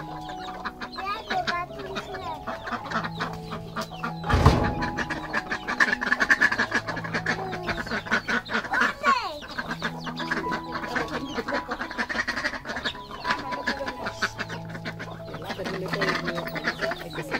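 Ducks quack.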